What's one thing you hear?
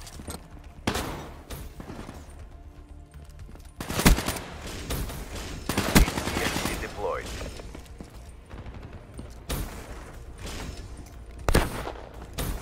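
A rifle fires sharp single gunshots.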